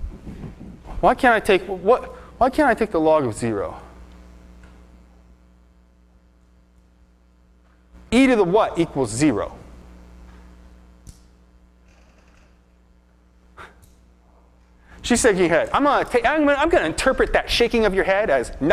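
A man lectures with animation in bursts, in a large echoing hall.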